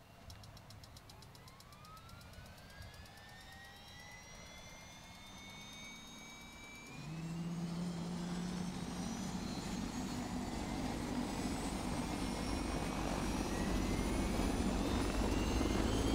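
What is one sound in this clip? A helicopter engine starts up with a whine that rises in pitch.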